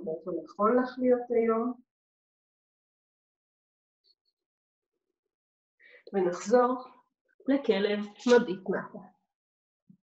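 A woman speaks calmly, giving instructions in short phrases.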